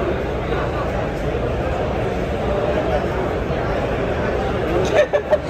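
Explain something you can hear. A crowd murmurs steadily in a large echoing room.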